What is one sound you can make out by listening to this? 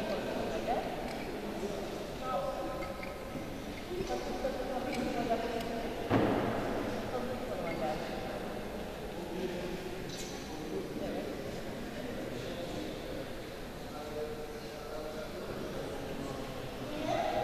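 A crowd of young people murmurs and chatters quietly in a large echoing hall.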